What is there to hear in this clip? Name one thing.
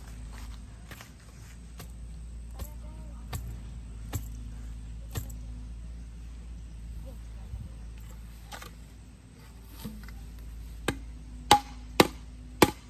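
Wooden poles knock and clack against each other.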